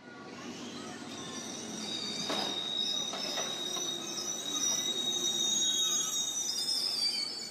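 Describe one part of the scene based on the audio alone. Train wheels squeal shrilly on the rails.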